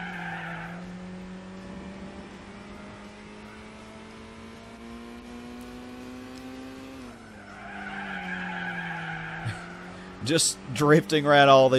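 A small car engine drones steadily, rising in pitch and dropping at a gear change.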